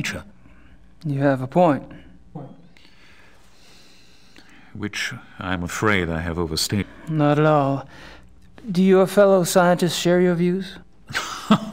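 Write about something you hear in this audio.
A younger man answers in a relaxed voice, heard through a recording.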